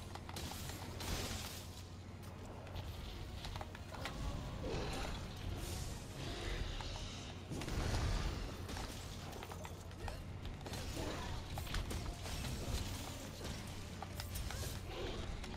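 A huge beast roars.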